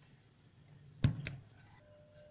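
An iron is set down with a thud.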